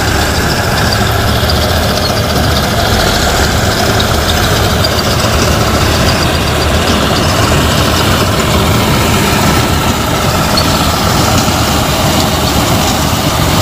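Rice stalks rustle and crackle as a harvester cuts through them.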